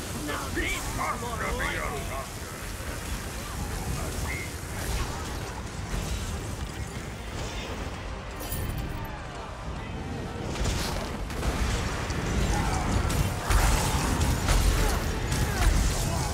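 Magic spells crackle and zap in a fight.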